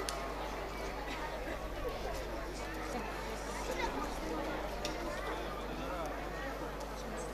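A woman sings into a microphone, heard through loudspeakers.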